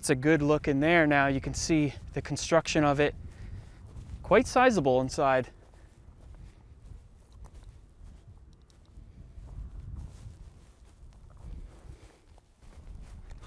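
Wind blows outdoors, rustling dry grass.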